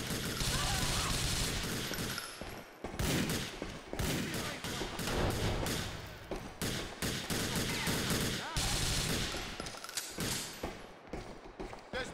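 Gunfire rattles in short, fast bursts.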